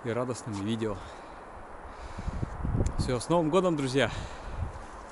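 A man talks calmly and cheerfully close by.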